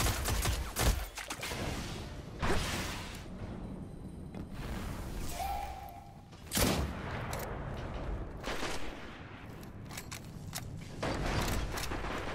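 Gunshots bang sharply now and then.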